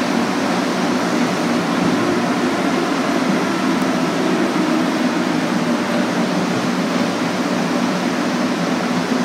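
A subway train rumbles and rattles loudly along the tracks.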